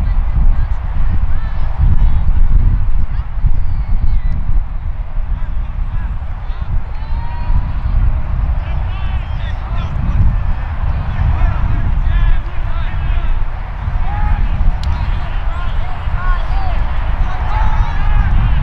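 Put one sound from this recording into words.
Wind blusters loudly across an open field.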